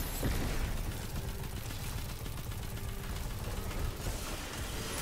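A rifle fires in rapid bursts.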